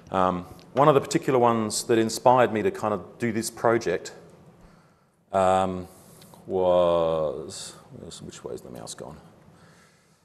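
A man speaks to an audience in an echoing room, heard through a microphone.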